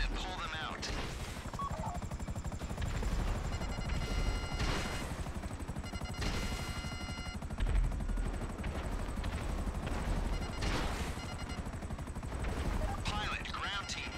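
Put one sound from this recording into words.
A helicopter's rotor chops steadily close by.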